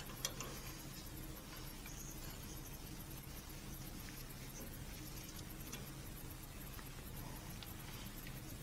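Metal parts clink and scrape as gloved hands work a fitting loose.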